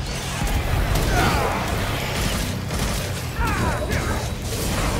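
A winged creature screeches.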